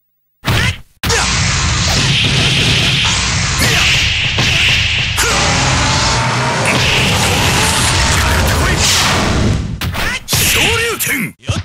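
Heavy punches and kicks thud in quick succession.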